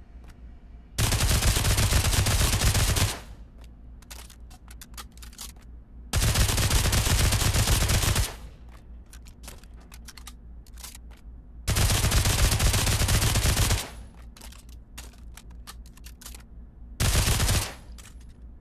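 An automatic gun fires loud, rapid bursts in a room.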